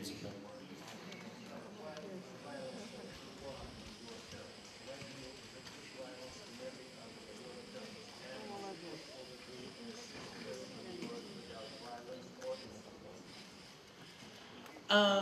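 A middle-aged man answers calmly into a microphone.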